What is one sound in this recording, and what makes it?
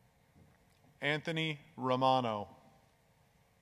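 A man announces through a loudspeaker in a large echoing hall.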